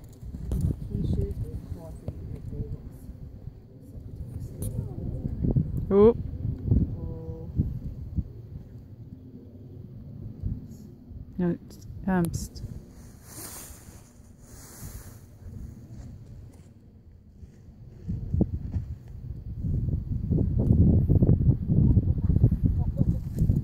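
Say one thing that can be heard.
A horse's hooves thud on soft sand as it canters.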